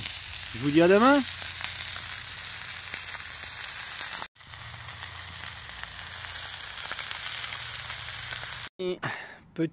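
A steak sizzles loudly in a hot pan.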